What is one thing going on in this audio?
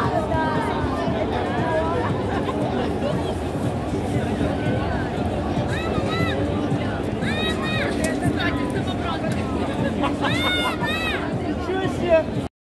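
A large crowd murmurs and chatters in an open stadium.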